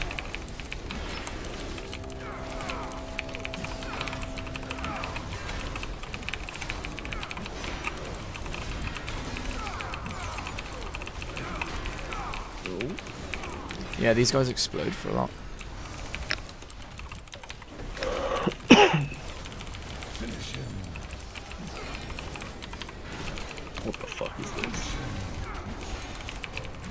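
Magic spells whoosh, crackle and burst in a busy battle.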